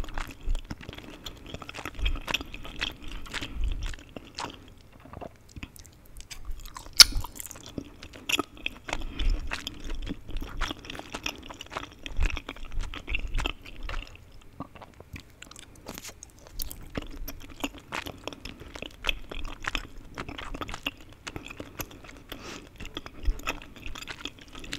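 A young woman chews food wetly and crunchily close to a microphone.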